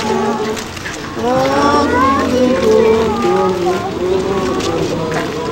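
A crowd of men and women sings together outdoors.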